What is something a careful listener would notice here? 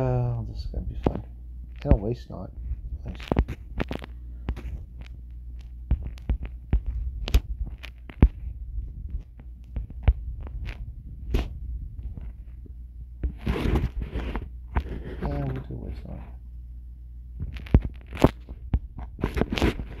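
Digital card sounds click and swish as cards are played.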